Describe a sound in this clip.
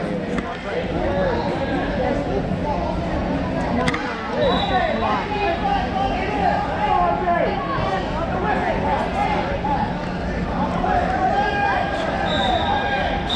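A crowd chatters and calls out throughout a large echoing hall.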